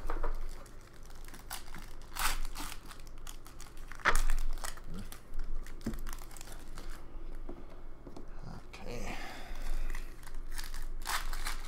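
A card pack's foil wrapper crinkles as it is torn open.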